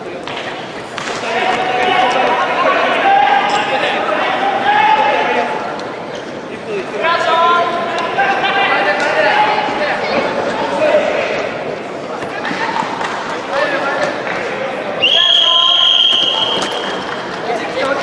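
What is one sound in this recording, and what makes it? Young men shout encouragement from the mat side in an echoing hall.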